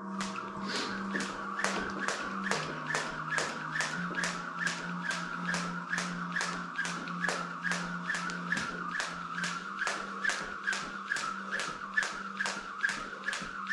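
A jump rope slaps the floor in a quick, steady rhythm.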